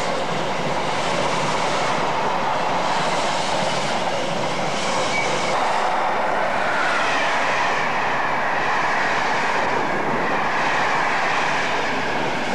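A train rushes past at speed with a loud, steady roar and rattle.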